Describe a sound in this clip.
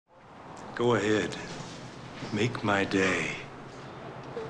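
A middle-aged man speaks in a low, menacing voice.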